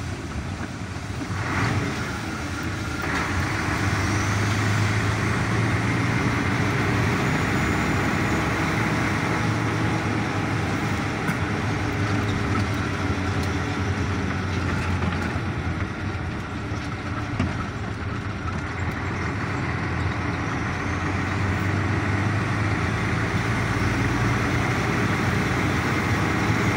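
Tyres roll and rumble on the road surface.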